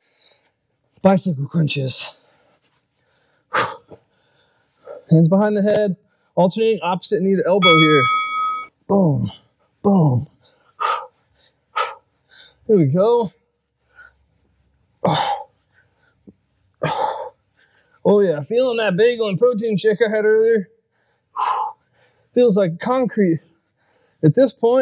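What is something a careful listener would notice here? A man speaks with energy into a close microphone.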